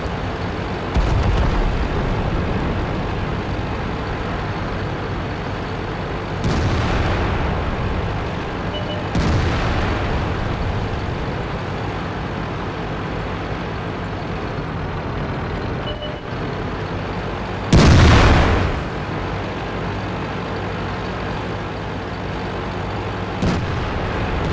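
A tank cannon fires with loud booms.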